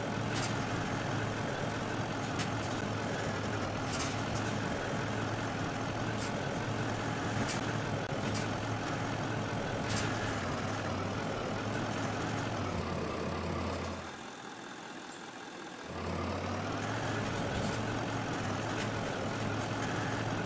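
A truck engine rumbles and revs while driving over rough ground.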